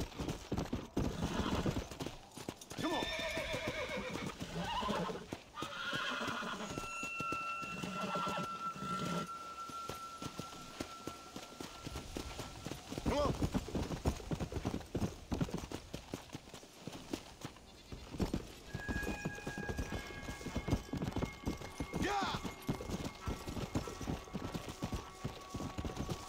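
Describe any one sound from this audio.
A horse's hooves pound the ground at a gallop.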